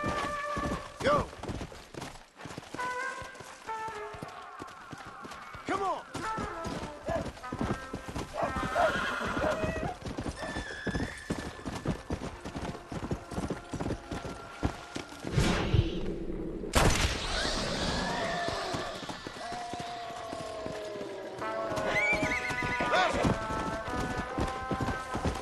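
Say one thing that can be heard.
Horse hooves gallop steadily over dry ground.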